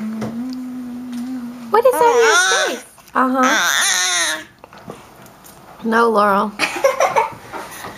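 A baby babbles and squeals loudly up close.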